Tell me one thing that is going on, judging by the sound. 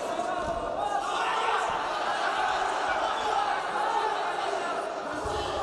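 A crowd cheers louder.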